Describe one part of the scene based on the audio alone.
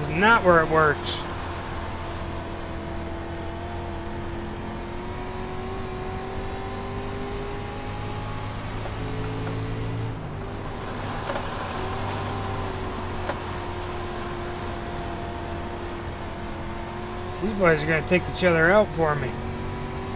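A race car engine drones steadily, shifting pitch slowly.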